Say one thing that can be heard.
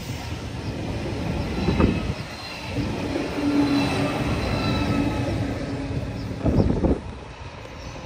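A train rolls past close by with a loud rumble.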